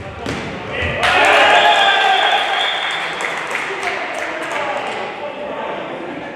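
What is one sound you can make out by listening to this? Spectators cheer loudly and then die down.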